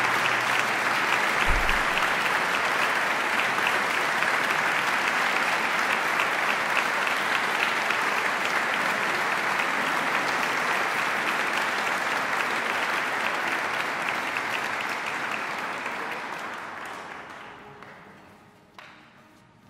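An audience applauds loudly in a large echoing hall, then the clapping fades away.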